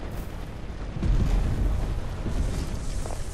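An explosion booms nearby with a deep rumble.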